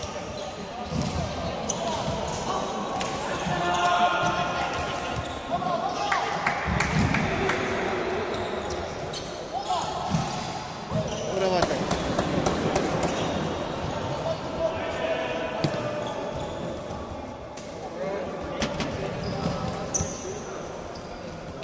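Sticks clack against a ball and against each other in a large echoing hall.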